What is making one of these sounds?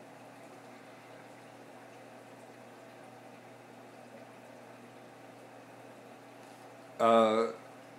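An aquarium pump hums steadily and quietly.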